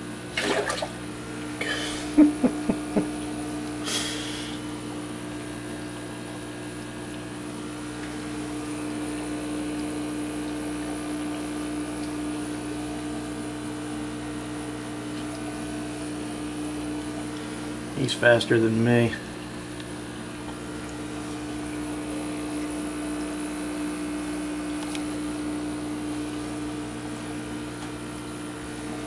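Air bubbles burble steadily through water.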